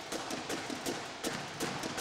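A bass drum booms.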